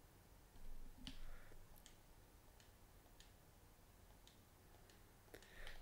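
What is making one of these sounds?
A gun clicks and clatters as it is handled.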